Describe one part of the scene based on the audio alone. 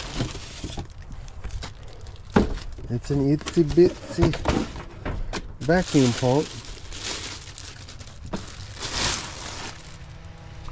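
A plastic bag crinkles and rustles.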